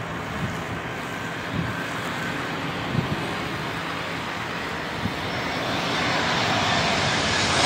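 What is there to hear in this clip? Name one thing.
A jet airliner's engines roar steadily, growing louder as the plane approaches.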